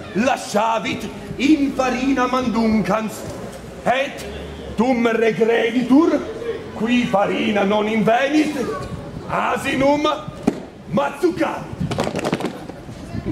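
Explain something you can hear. A man recites loudly in a singing voice, close by.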